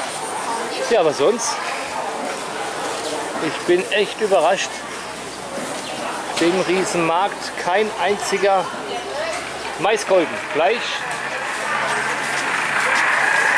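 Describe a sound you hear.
A crowd of men and women murmurs in the background of a busy market.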